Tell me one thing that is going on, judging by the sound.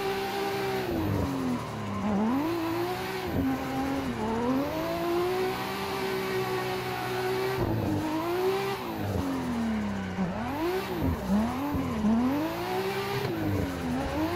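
A racing car engine revs up and down, rising and falling in pitch.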